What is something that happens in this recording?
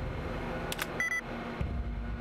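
A computer terminal gives a short electronic error beep.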